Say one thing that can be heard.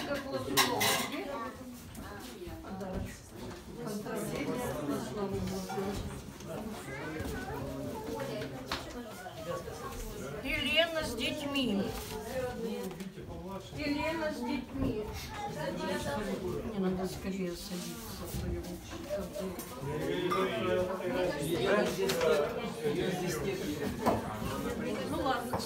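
Men and women talk over each other in a crowded room.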